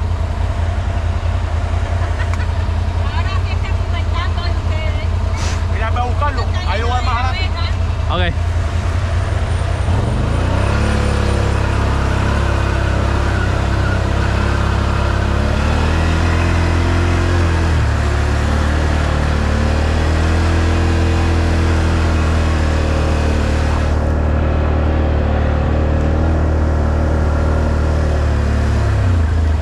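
An all-terrain vehicle engine rumbles and revs up close.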